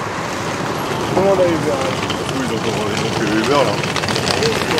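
A man talks nearby as he walks past.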